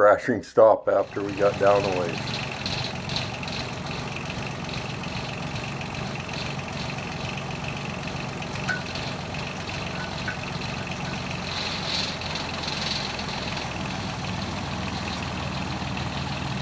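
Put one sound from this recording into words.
A drilling rig's engine runs with a steady low drone.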